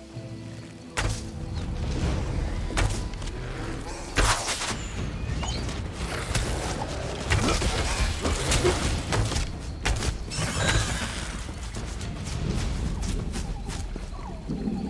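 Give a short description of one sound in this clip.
Weapon blows strike and clash in a fight.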